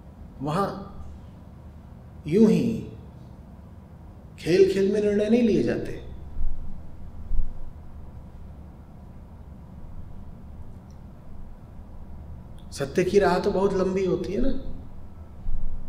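A man speaks calmly and close into a microphone, in short bursts with pauses.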